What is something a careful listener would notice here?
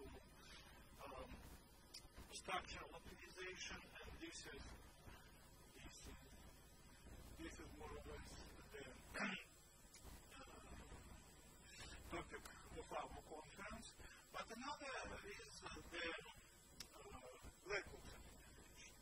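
An elderly man lectures calmly through a microphone.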